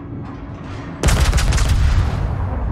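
Heavy naval guns fire with loud booming blasts and a rumbling roar.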